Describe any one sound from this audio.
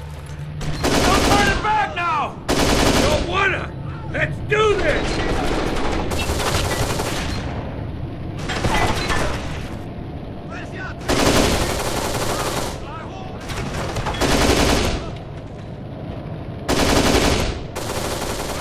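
Automatic gunfire rattles in loud bursts in an echoing space.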